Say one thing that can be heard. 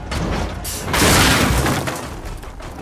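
A loud explosion bursts with a rumble.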